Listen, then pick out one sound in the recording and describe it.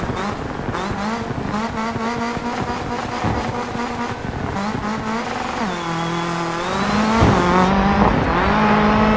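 A rally car engine revs hard and its pitch rises and falls with gear changes.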